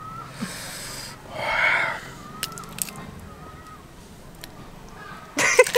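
Hands peel and snap a small green fruit.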